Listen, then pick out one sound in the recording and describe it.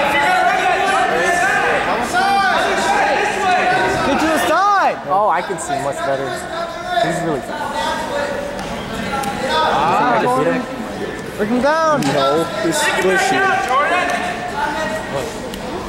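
A crowd of young spectators shouts and cheers in a large echoing hall.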